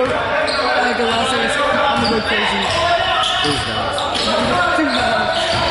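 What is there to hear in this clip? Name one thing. A basketball thuds as it is dribbled on the floor.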